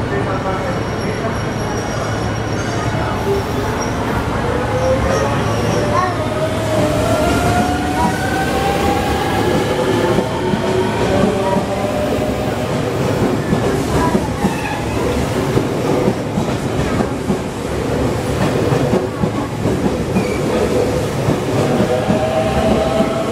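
A train rumbles past close by, its wheels clattering over the rail joints.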